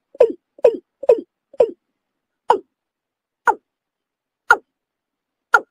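A bird calls with short, sharp notes, quickly at first and then more slowly.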